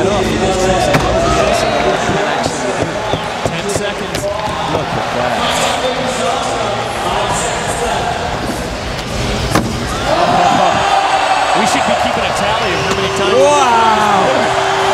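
A crowd cheers and shouts in a large echoing arena.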